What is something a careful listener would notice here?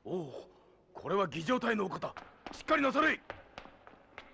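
A man speaks firmly and commandingly close by.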